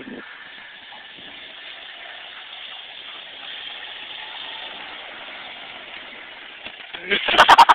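An all-terrain vehicle engine runs nearby.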